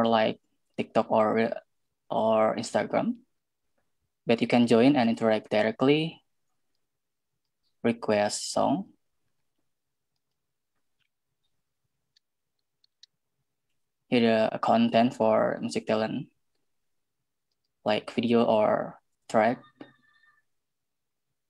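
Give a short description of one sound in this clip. A young woman speaks calmly through an online call, pausing between phrases.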